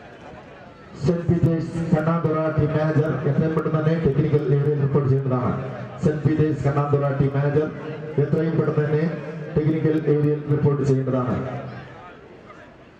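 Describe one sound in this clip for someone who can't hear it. A crowd of spectators chants and cheers loudly.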